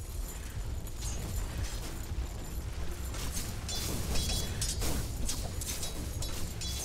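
Game characters clash with quick hits.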